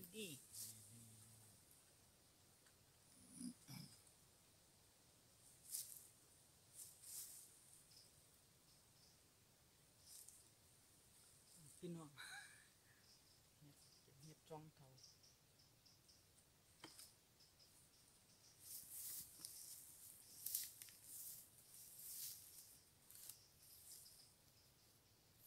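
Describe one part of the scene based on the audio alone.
A small knife snaps through mushroom stems.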